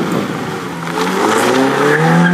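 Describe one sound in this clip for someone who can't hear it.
Gravel sprays and crunches under spinning tyres.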